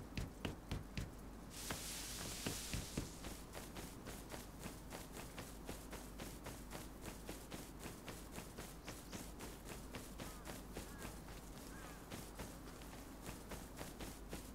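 Footsteps swish quickly through tall grass.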